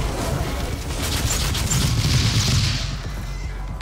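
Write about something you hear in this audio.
A loud electric explosion crackles and booms.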